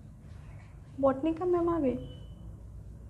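A young woman speaks briefly, close by.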